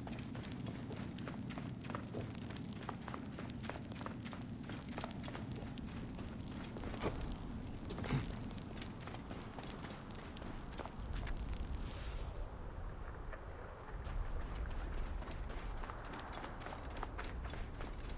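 Footsteps run across stone steps and sand.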